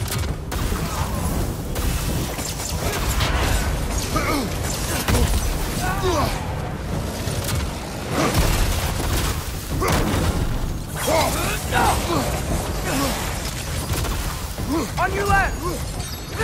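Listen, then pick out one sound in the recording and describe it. Weapons clash and strike in combat.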